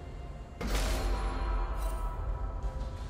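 A magic spell bursts with a loud whoosh and fades.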